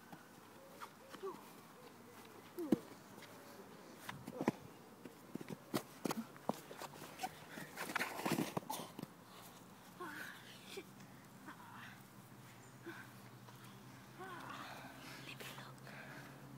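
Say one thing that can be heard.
Young boys laugh and shout nearby outdoors.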